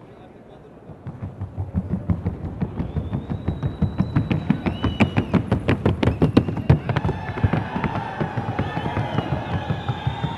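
A horse's hooves drum rapidly and evenly on a hollow wooden board.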